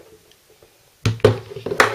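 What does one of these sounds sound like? A hand knocks a metal part against something hard.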